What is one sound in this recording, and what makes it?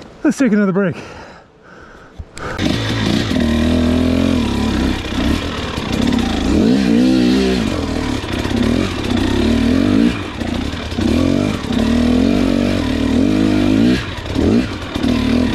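A dirt bike engine revs up and down, rising and falling in pitch.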